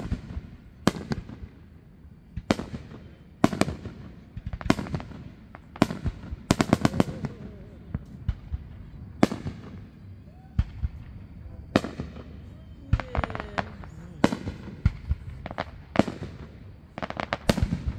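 Fireworks explode with loud, echoing booms outdoors.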